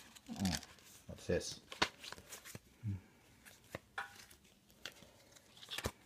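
Playing cards slap and slide on a soft tabletop.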